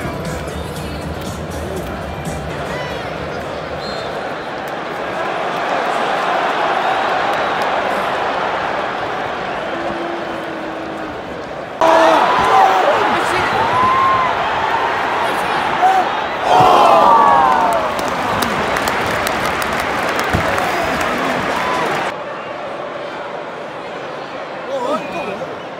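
A large stadium crowd roars and chants steadily all around.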